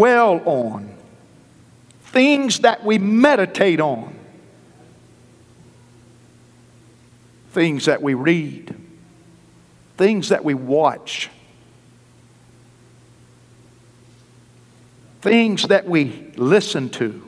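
A middle-aged man preaches with animation into a microphone, in bursts with long pauses, in a large echoing hall.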